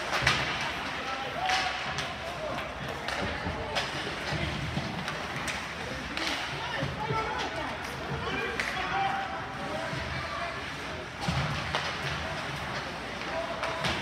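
Spectators chatter in a large echoing rink.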